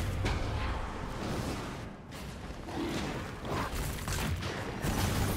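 Video game combat sound effects clash and whoosh.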